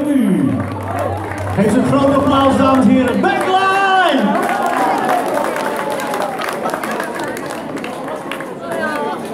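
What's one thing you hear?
A live band plays loudly through loudspeakers in a large hall.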